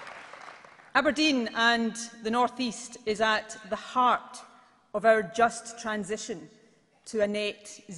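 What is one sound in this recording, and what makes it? A woman speaks firmly into a microphone over loudspeakers in a large hall.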